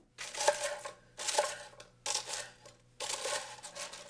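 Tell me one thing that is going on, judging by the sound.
A knife crunches through crisp toasted bread.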